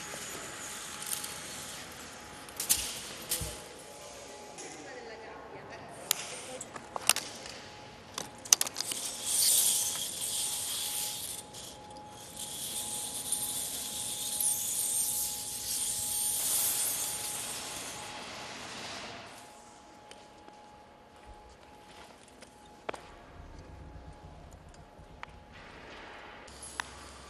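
Coiled steel wire rattles and clinks.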